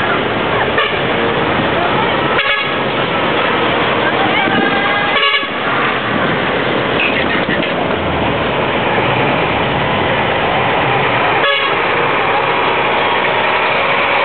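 A truck engine rumbles loudly as the truck rolls slowly closer.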